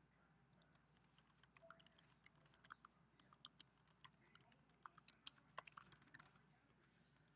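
Keys on a computer keyboard click in quick bursts.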